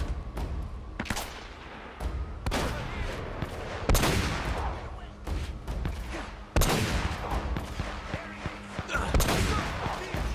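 A scoped rifle fires sharp shots.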